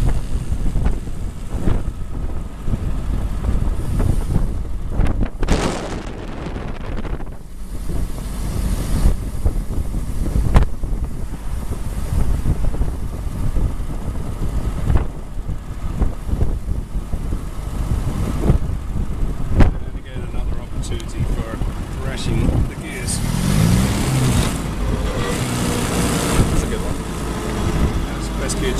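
Wind buffets past an open car.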